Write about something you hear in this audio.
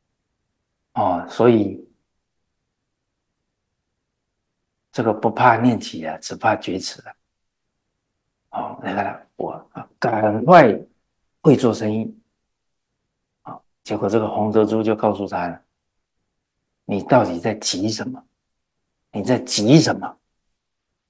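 An elderly man speaks calmly and with animation into a close microphone, with pauses between phrases.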